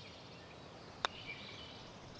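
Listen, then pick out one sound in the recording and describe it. A putter taps a golf ball once.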